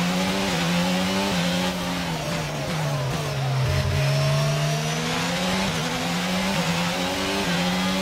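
A racing car engine whines at high revs, its pitch dropping and rising as it shifts gears.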